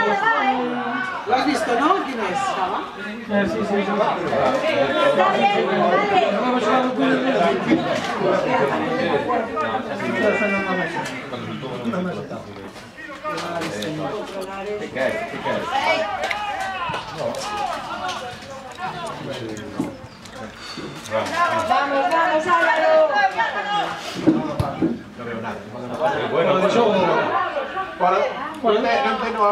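Spectators talk and call out close by, with animation.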